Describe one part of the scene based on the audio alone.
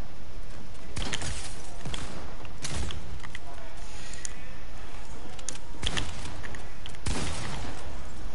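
Gunshots ring out in sharp single bursts.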